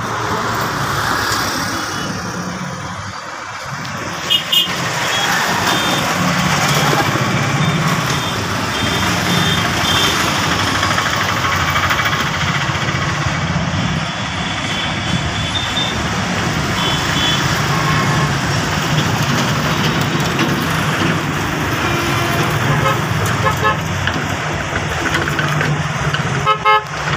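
Motorbike engines hum as they pass nearby.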